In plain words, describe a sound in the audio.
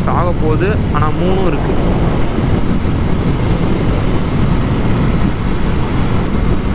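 Wind buffets and rumbles loudly outdoors.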